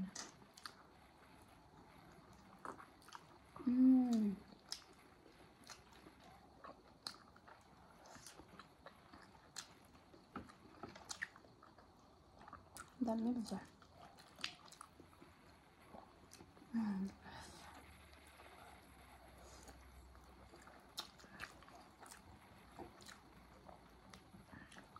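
Young women chew and smack their lips close up.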